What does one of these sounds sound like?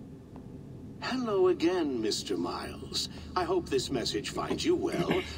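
A man speaks calmly and at length, as if in a recorded message.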